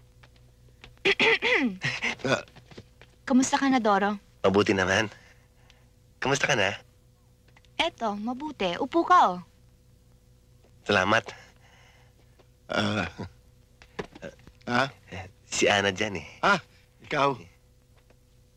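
An older man speaks with animation.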